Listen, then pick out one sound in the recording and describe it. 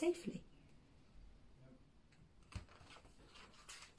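Pages of a book rustle as they turn.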